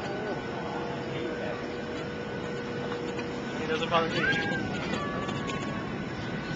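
Engine and air noise rumble steadily inside an airliner cabin in flight.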